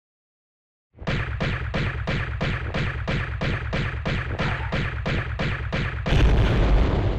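Pistols fire in a fast, steady burst.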